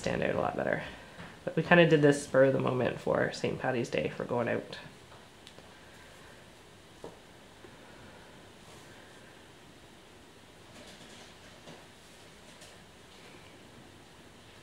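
A small brush softly strokes across a fingernail.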